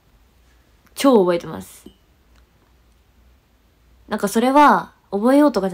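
A young woman speaks close to a microphone in short animated bursts.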